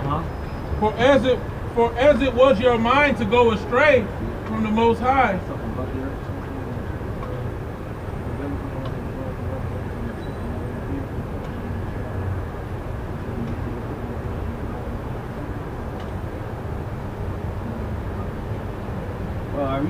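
City traffic rumbles steadily on a street outdoors.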